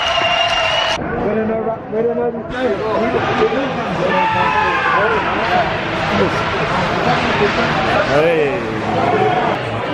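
A crowd of adult men and women chatter nearby.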